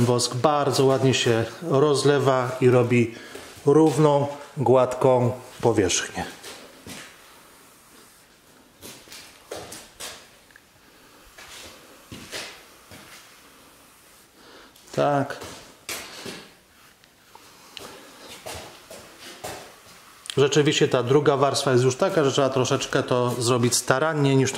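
A brush swishes softly across a wooden surface.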